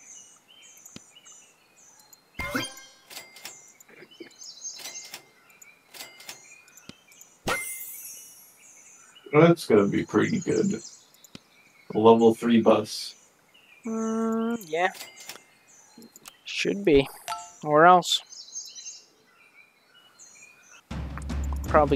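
Short, bright electronic blips and clicks play now and then.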